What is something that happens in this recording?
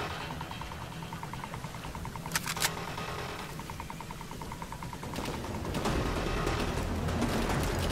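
A rifle is reloaded with metallic clicks.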